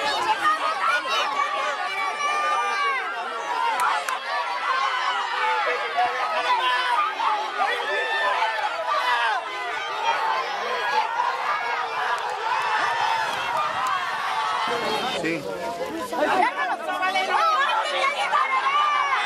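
A crowd shouts and cheers excitedly outdoors.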